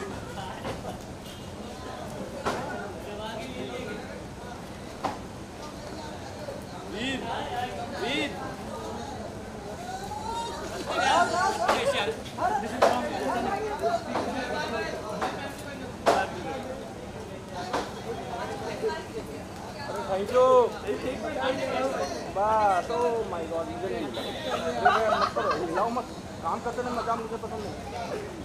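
A crowd chatters and shouts close by, outdoors.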